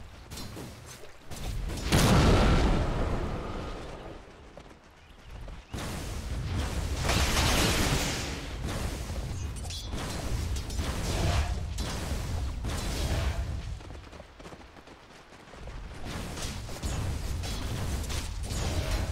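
Magic spells whoosh and crackle during a battle.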